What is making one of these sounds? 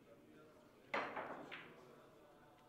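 A cue strikes a billiard ball and balls clack together sharply.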